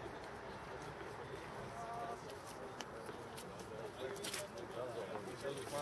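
Footsteps shuffle on paving as a small group walks up.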